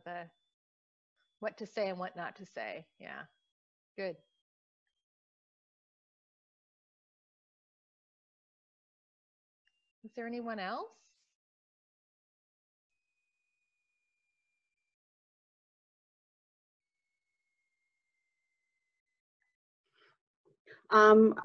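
Women talk in short, broken bursts over an online call.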